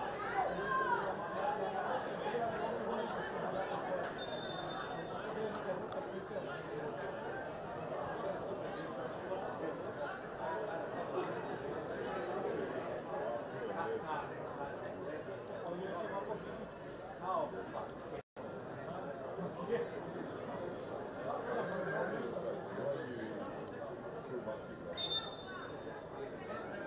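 A crowd of spectators chatters and calls out across an open stadium.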